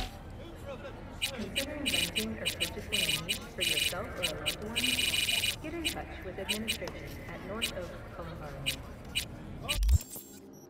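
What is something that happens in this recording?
Short electronic blips tick quickly as a menu is scrolled.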